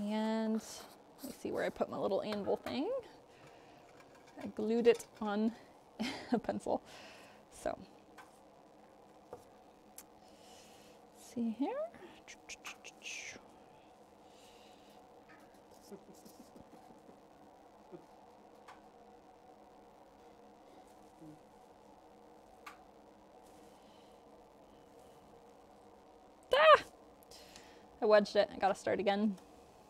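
A young woman talks calmly and with animation, close by.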